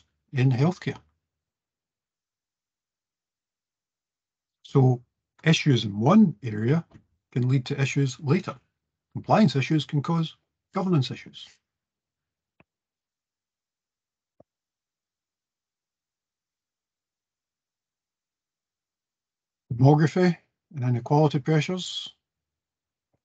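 A middle-aged man speaks calmly through a headset microphone on an online call, with pauses.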